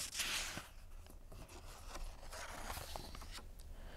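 A paper page turns with a soft rustle.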